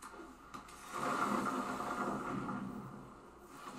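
A magical whoosh sweeps across.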